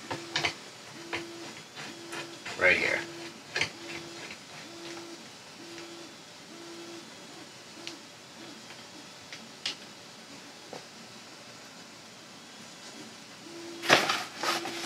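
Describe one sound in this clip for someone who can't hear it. Plastic parts click and knock as a device is handled.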